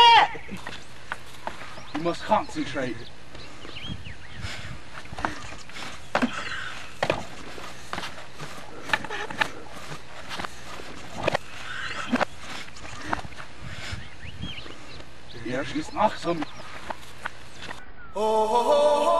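Shoes thump on wooden ladder rungs.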